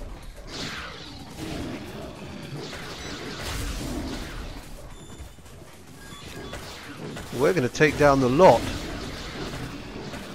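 Blows and thuds land in a fight.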